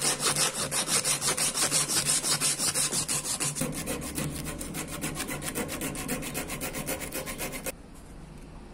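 Sandpaper rasps rapidly back and forth against wood.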